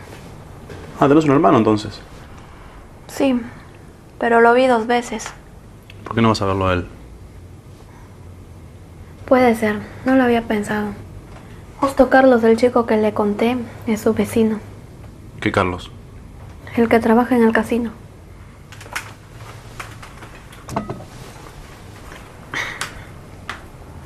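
A young man talks quietly nearby.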